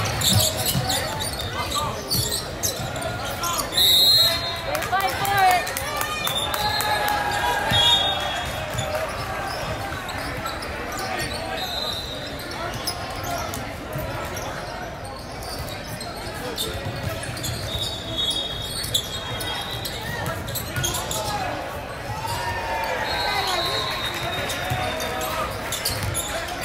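Young men shout and call out across a large echoing gym.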